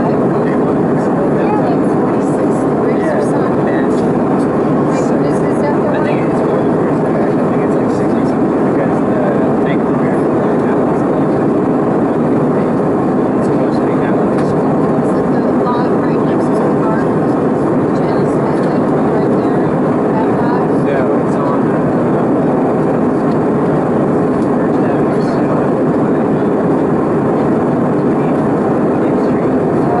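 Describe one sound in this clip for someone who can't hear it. Jet engines roar steadily in a plane's cabin.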